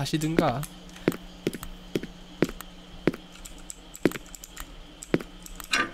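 Footsteps thud on a wooden floor at a steady walking pace.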